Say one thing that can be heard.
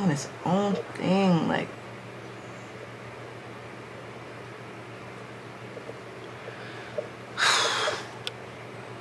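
A young woman speaks casually, close to the microphone.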